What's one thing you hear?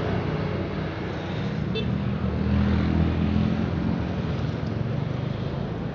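A motorbike engine passes close by.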